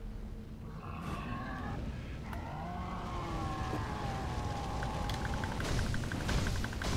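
A huge beast roars loudly.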